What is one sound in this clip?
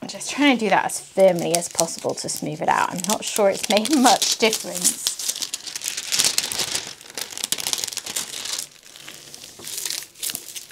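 Stiff paper crinkles and rustles.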